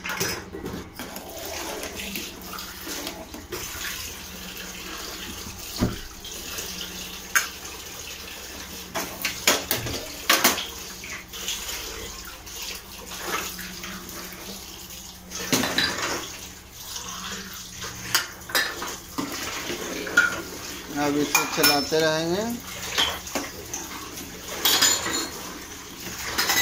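A metal spoon scrapes and clinks against a pot of milk.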